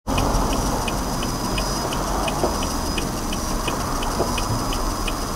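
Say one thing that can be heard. A car's engine hums steadily, heard from inside the car.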